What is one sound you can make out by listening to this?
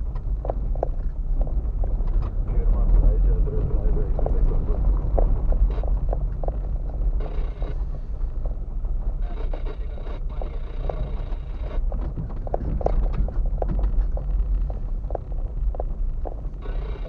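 Tyres crunch and rumble over a bumpy dirt track.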